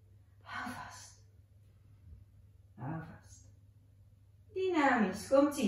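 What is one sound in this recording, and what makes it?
A woman speaks calmly and clearly, with pauses.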